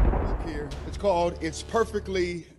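A man speaks calmly, close to a microphone.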